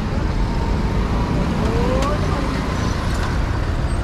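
A motor scooter engine buzzes close by and passes.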